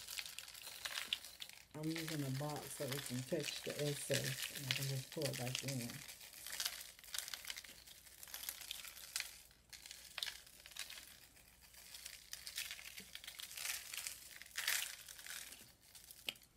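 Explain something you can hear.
Tiny crystals pour and rattle out of a glass jar.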